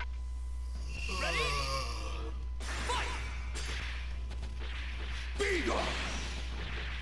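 Energy blasts whoosh and crackle in a fast video game fight.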